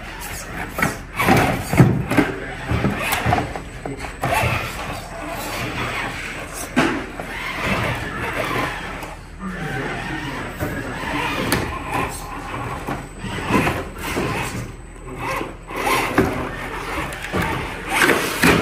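Plastic wheels knock and scrape against rocks.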